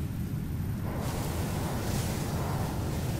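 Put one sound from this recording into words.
A laser beam hisses steadily as it fires.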